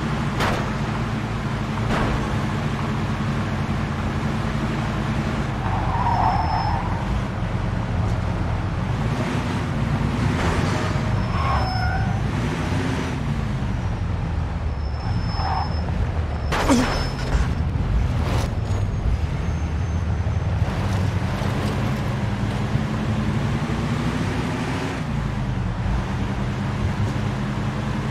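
A car engine hums steadily and revs up and down.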